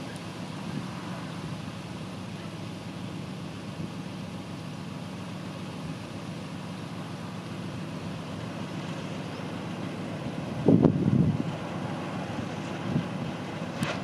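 A diesel locomotive engine idles with a steady low rumble nearby.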